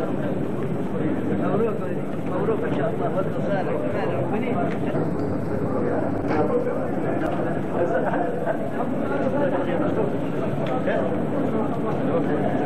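A crowd of men chatter and call out to one another nearby.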